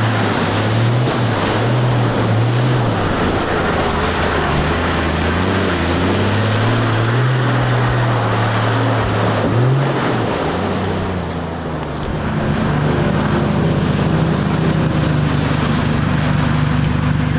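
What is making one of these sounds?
Muddy water splashes against a vehicle's wheels.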